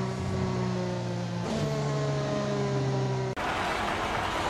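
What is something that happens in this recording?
A racing car engine whines at high revs and shifts gear.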